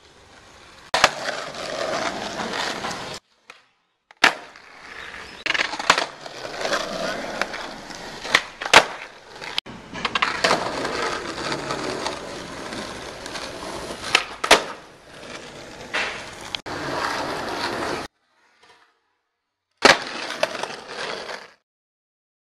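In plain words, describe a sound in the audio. Skateboard wheels roll and rattle over rough pavement.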